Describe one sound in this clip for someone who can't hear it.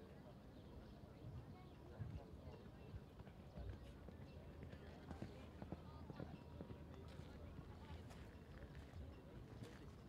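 A horse's hooves thud on sand at a canter.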